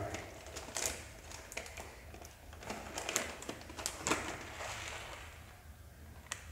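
A plastic packet crinkles and rustles as hands open it.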